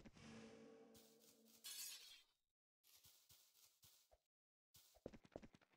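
Footsteps patter quickly on sand and grass.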